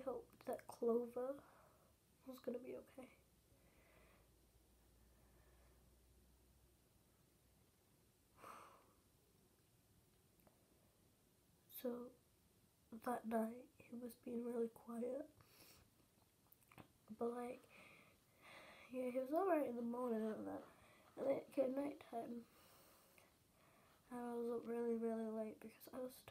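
A young girl talks calmly and close to the microphone, with pauses.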